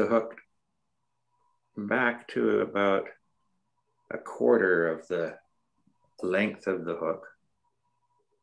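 An elderly man speaks calmly, close to a microphone, as if over an online call.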